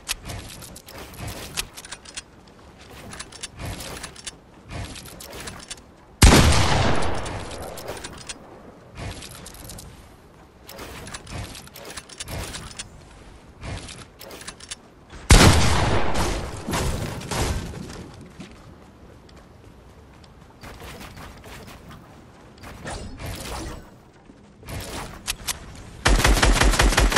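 Building pieces snap into place with quick clicks and thuds.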